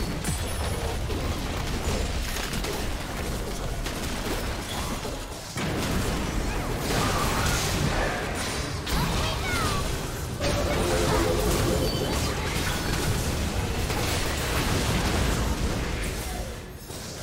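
Magic spells whoosh and blast in a video game battle.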